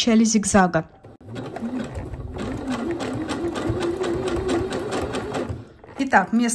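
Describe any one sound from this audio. A sewing machine stitches rapidly.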